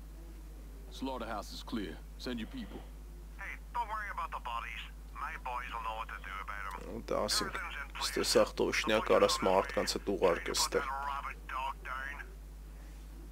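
A man speaks calmly into a telephone.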